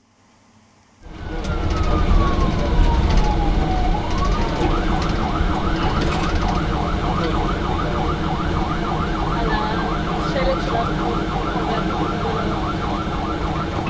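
A vehicle engine rumbles while driving.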